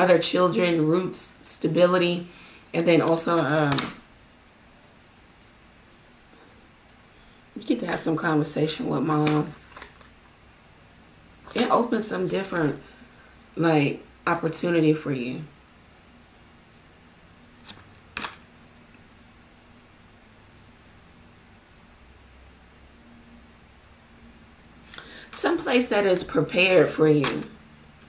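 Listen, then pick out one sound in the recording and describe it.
A woman speaks calmly and closely into a microphone.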